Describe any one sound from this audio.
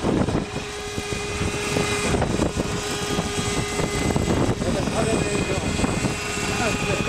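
A model helicopter's engine whines steadily with a high buzz.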